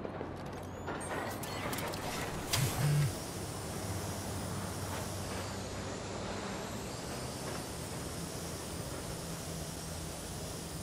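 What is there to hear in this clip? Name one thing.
A small drone whirs and buzzes steadily.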